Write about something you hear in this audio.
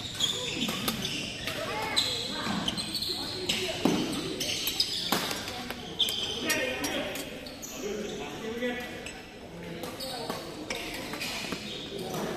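Rackets strike a shuttlecock with sharp pops, again and again.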